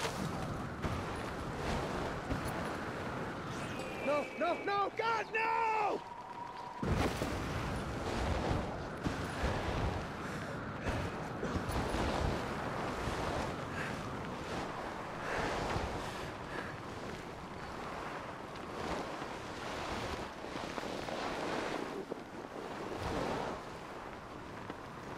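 A snowboard hisses and scrapes over snow.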